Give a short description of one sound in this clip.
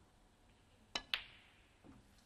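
A snooker cue strikes the cue ball with a sharp click.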